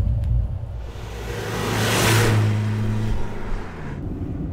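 A car drives past with a rushing whoosh.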